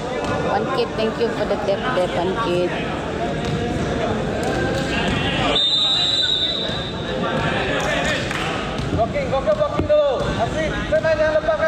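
Young men call out to each other nearby.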